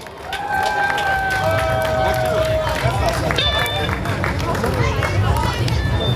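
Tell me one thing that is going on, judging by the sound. A rock band plays loudly with drums and bass.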